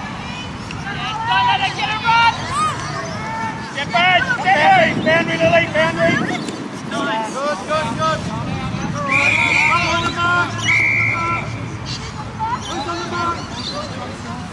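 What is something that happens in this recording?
Young women shout and call out excitedly across an open field.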